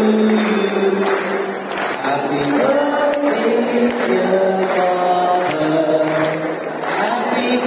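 A large crowd of children sings together.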